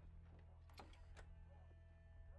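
A metal bolt slides and clanks on a wooden door.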